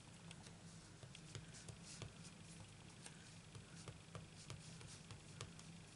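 A clear acrylic stamp dabs on an ink pad.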